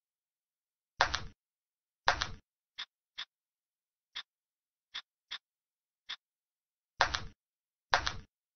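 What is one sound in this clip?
Short electronic game sound effects click and whoosh now and then.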